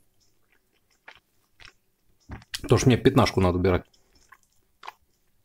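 A man chews food with soft smacking sounds.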